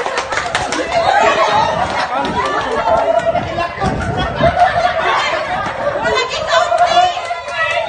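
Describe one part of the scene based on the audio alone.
A group of men and women cheer and shout excitedly nearby.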